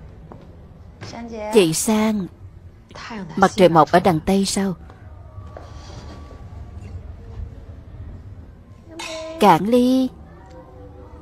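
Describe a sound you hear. A young woman answers in a low, flat voice.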